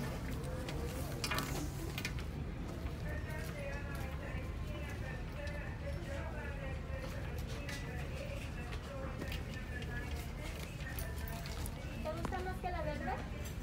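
A hand handles and taps a leather handbag.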